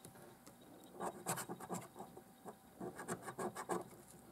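A coin scratches across a card with quick, rasping strokes.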